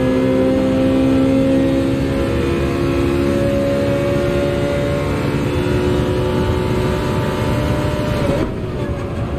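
A racing car engine roars at high revs and climbs slowly in pitch.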